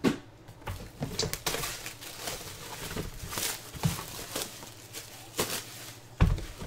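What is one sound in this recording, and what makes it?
Plastic wrap crinkles and rustles as it is torn off a box.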